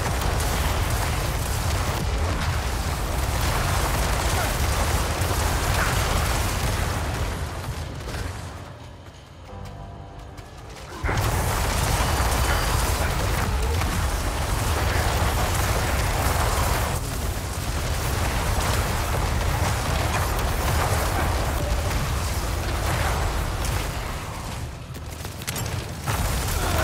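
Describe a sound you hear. Spells and blasts crash and rumble loudly in a video game battle.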